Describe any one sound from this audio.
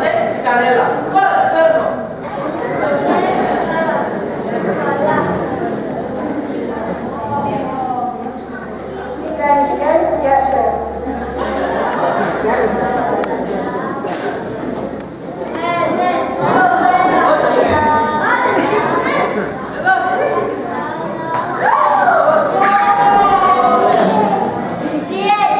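A young girl speaks loudly and clearly in a large echoing hall.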